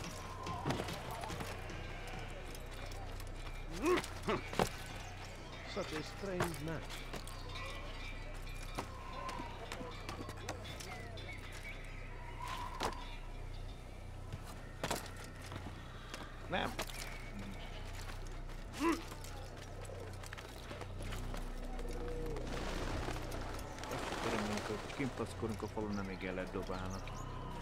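Footsteps and climbing thuds sound on stone and wood.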